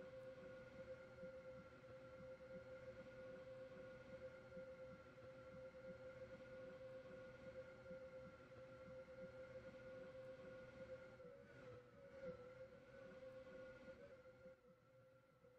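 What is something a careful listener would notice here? A stationary train's engine hums steadily.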